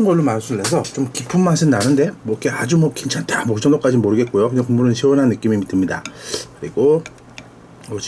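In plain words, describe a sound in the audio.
A wooden spoon stirs and scoops through soup.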